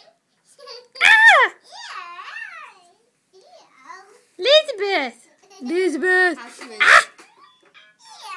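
A small child laughs and squeals.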